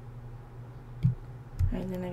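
A wooden block breaks with a dull knock.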